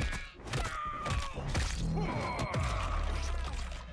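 Bones crunch and flesh squelches in a brutal blow.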